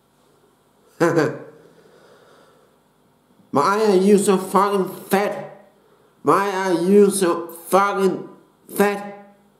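A man speaks close up with animation.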